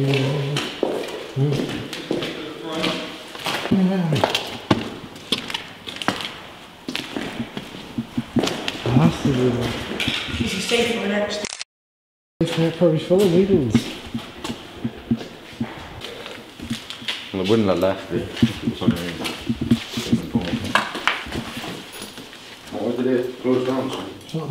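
Footsteps crunch on a gritty floor.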